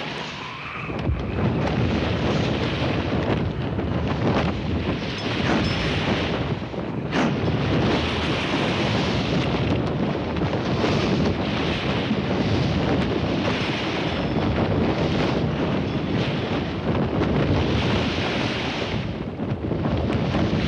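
Strong wind blows loudly outdoors.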